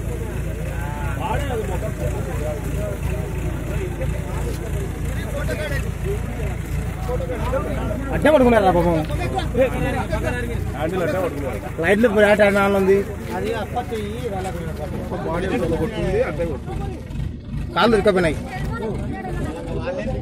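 Several men talk and shout excitedly nearby, outdoors.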